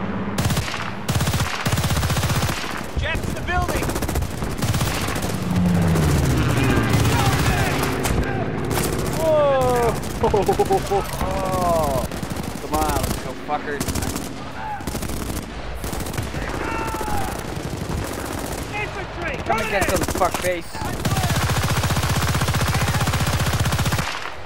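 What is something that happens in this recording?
A rifle fires rapid bursts close by.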